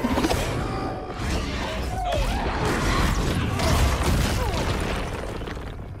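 Flames roar and burst.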